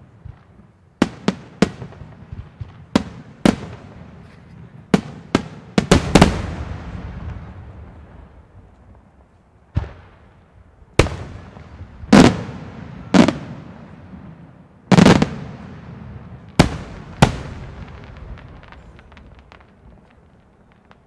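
Fireworks crackle and fizzle after the bursts.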